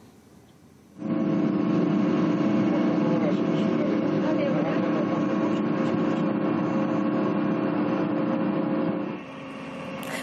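A combine harvester's engine rumbles steadily from inside its cab.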